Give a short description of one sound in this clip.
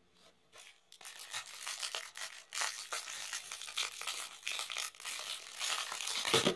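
A foil wrapper crinkles and rustles loudly.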